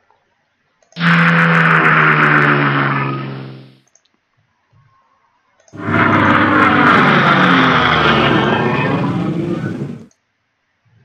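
A tank engine roars and rumbles as it moves.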